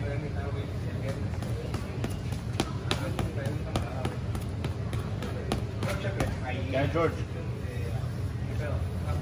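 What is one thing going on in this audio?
Gloved fists thud rapidly against a heavy punching bag.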